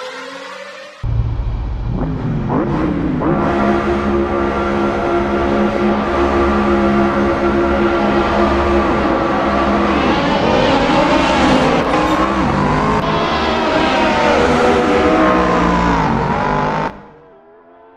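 Racing car engines roar loudly, revving up and rising in pitch as the cars speed away.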